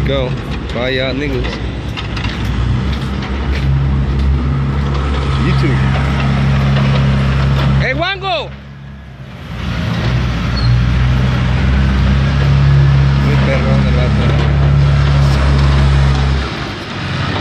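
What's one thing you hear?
A diesel tractor loader rumbles nearby.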